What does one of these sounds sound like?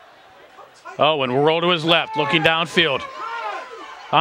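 Spectators nearby cheer and shout loudly.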